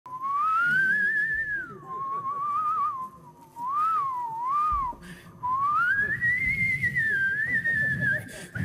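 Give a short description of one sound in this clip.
A man whistles a wavering melody into a microphone.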